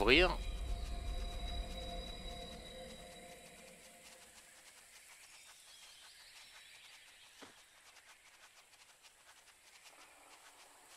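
Paws patter softly over grass.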